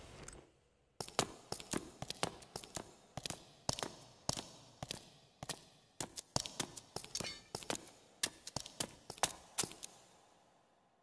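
Heavy armoured footsteps clank on a stone floor in a large echoing hall.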